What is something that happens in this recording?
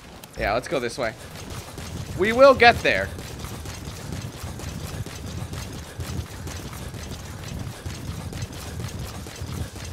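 Footsteps run quickly over dry, gravelly ground.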